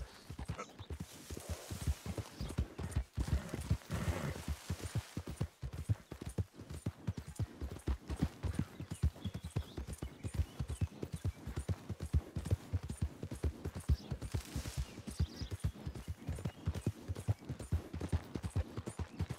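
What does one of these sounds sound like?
A horse's hooves gallop on grass and dirt.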